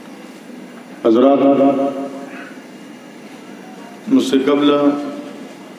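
A man sings in long, drawn-out phrases through a microphone.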